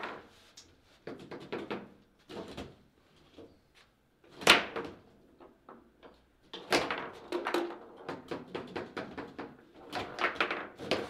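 A hard ball knocks and clacks against the figures and walls of a table football table.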